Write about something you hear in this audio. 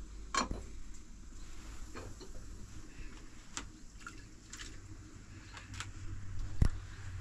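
Water sloshes in a plastic basin.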